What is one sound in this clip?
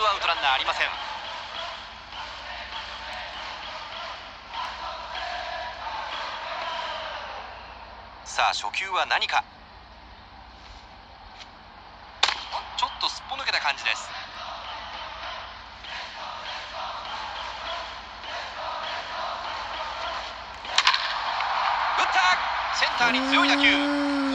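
A stadium crowd cheers and chants through a television speaker.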